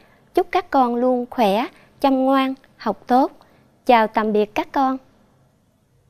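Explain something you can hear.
A young woman speaks clearly and warmly into a microphone.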